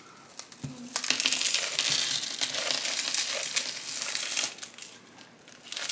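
Potting mix rustles and scrapes into a pot.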